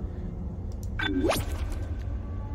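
A sweeping electronic whoosh sounds as something starts loading.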